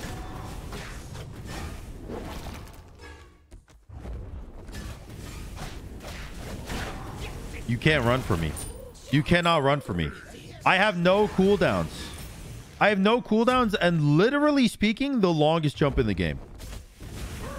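Game sound effects whoosh and crackle with fiery blasts.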